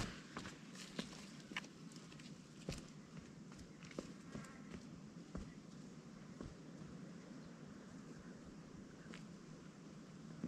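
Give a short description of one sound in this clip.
Footsteps crunch on a stony path and fade as they move away.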